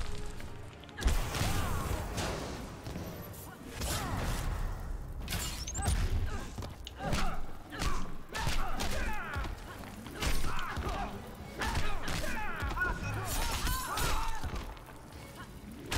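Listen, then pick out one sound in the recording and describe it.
Punches and kicks thud and crack in a video game fight.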